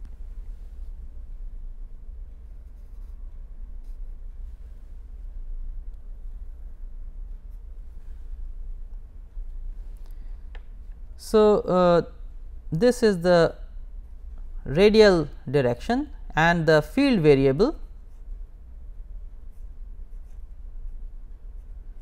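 A felt-tip pen scratches softly on paper.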